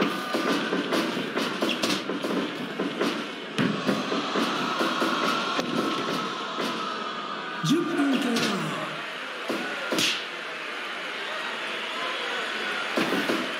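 Blows and body slams thud on a wrestling ring mat.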